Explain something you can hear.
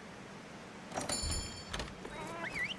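A bright electronic chime rings out.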